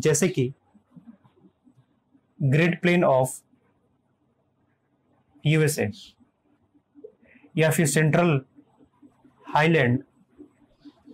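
A man speaks calmly in short phrases close by.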